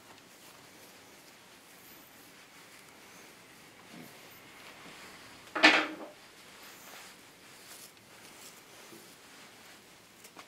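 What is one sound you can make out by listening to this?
Fingers rustle through hair.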